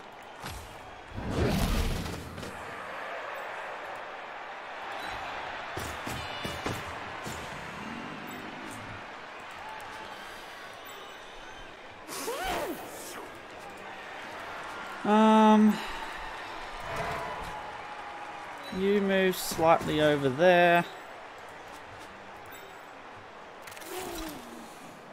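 Game sound effects chime and thud as pieces move.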